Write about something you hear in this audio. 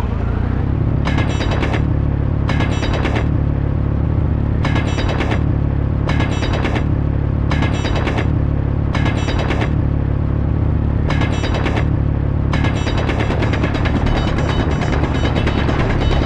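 A drill bit grinds harshly against rock in repeated bursts.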